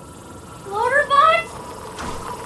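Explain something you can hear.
A small robot chirps with rising electronic beeps.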